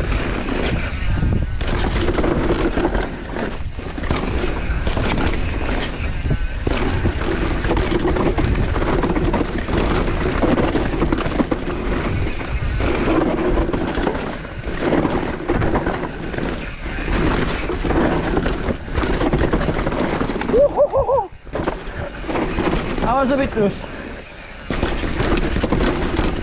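Bicycle tyres rumble and crunch over a dirt trail.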